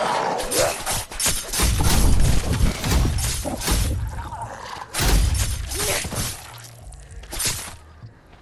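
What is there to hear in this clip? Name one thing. A blade slashes and thuds into flesh with wet, heavy impacts.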